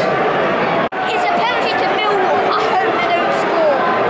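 A young boy speaks close by.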